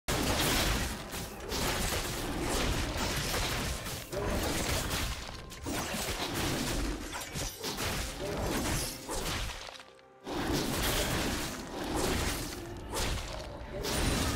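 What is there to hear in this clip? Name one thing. Video game combat sound effects clash and whoosh.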